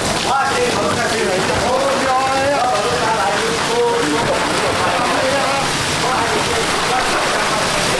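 Fish slide out of a barrel and splash into a plastic crate.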